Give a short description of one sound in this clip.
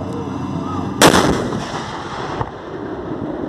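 An armoured vehicle fires its gun with a loud boom that echoes away outdoors.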